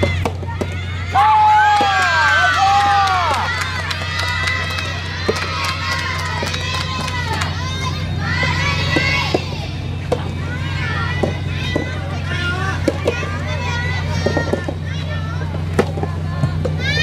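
Tennis balls are struck with rackets, with sharp pops now and then.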